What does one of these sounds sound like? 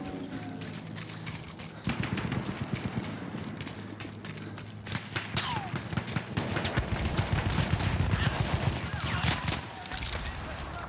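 Gunfire cracks nearby in quick bursts.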